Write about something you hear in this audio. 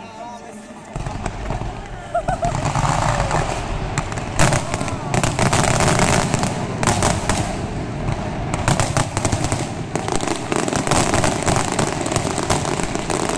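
Fireworks crackle and boom loudly, close by.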